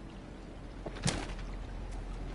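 A cardboard box thumps onto a floor.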